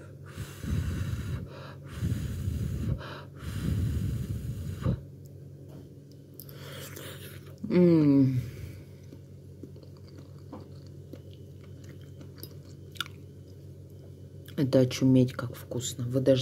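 A metal fork scrapes and clinks against a plate.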